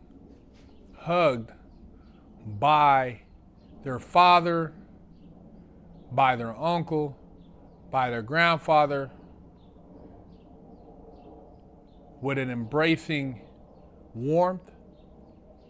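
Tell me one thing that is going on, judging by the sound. A middle-aged man speaks calmly and close into a clip-on microphone, in short bursts with pauses.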